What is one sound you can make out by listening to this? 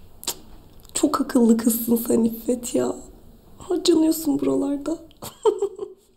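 A young woman speaks softly and warmly close by.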